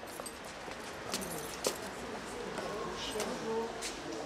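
Footsteps tap on stone steps close by.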